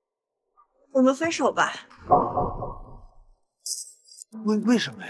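A young man speaks with surprise.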